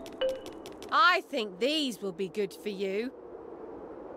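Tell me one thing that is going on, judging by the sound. A woman speaks cheerfully in a sing-song voice.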